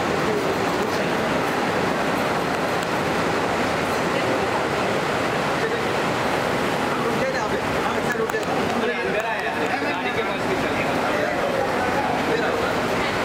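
A crowd of people chatter and call out loudly nearby.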